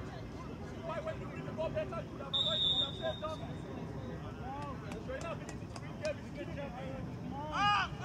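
Young players shout to each other in the distance across an open field.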